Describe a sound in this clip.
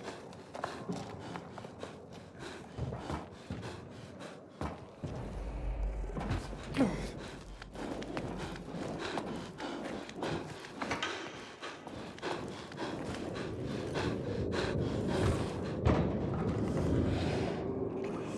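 Footsteps knock on a wooden floor.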